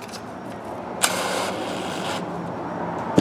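A cordless drill whirs briefly.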